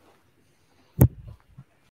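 A microphone thumps loudly.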